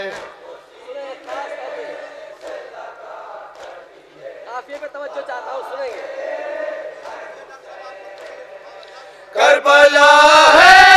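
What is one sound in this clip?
A young man recites with passion into a microphone, heard through loudspeakers.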